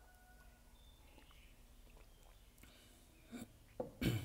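A man gulps water from a glass.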